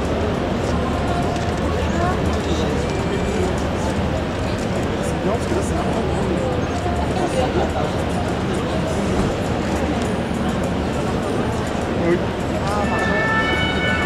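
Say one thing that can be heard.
A young man talks and laughs with others nearby.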